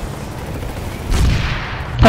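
A heavy vehicle engine rumbles low and steady.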